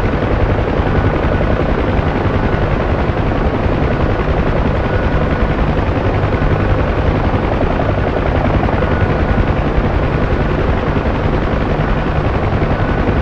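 A helicopter engine roars and whines steadily.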